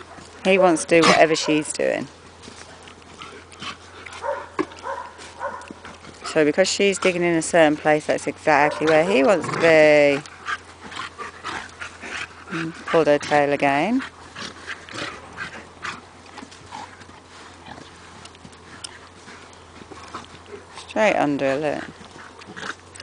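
A dog growls and barks.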